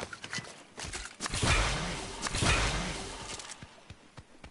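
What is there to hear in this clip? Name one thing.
A splash bursts with a loud crackling rush.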